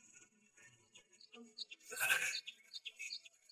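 A man gulps water from a bottle.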